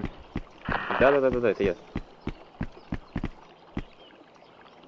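Footsteps thud steadily on wooden stairs.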